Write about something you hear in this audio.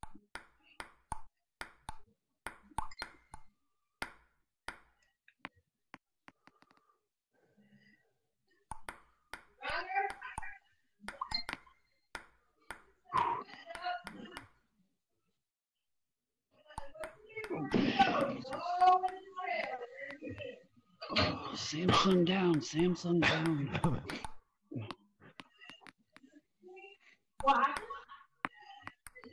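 A ping pong ball clicks sharply against paddles and the table in a quick rally.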